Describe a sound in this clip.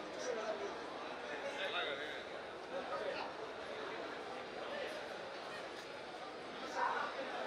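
A man speaks through a microphone and loudspeakers.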